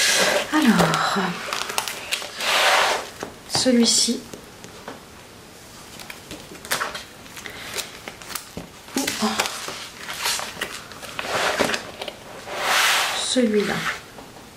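Stiff paper pages rustle as they are turned.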